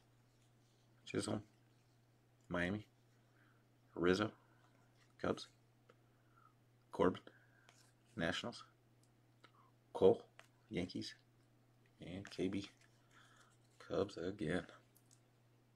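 Trading cards slide and flick against each other as they are handled.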